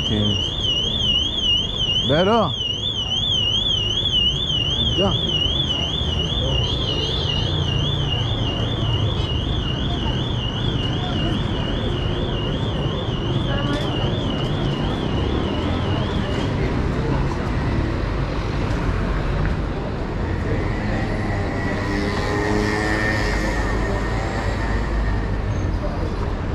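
Passers-by chatter in the background.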